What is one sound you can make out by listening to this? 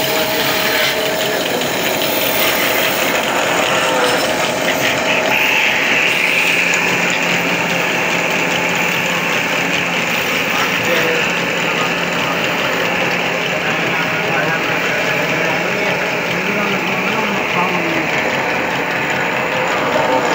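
A drive belt runs with a steady flapping hum.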